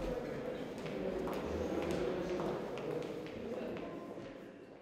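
Footsteps tap on a hard floor in an echoing hallway.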